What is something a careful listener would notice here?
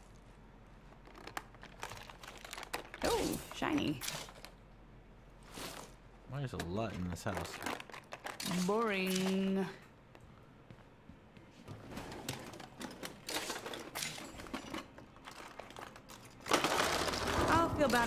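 Things rattle and rustle as cupboards and drawers are searched.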